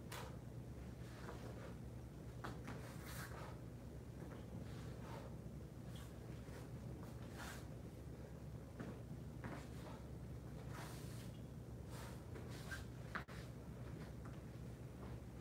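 Bare feet thump and shuffle on a padded floor.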